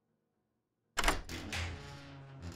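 A heavy metal safe door clanks open.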